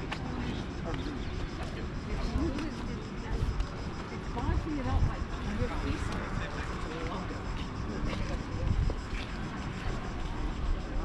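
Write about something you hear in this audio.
A man and a woman talk nearby outdoors.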